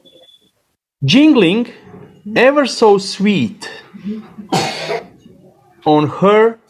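A woman speaks with animation, heard through an online call.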